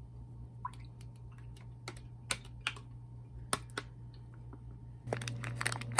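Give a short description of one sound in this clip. Juice pours and splashes into a glass.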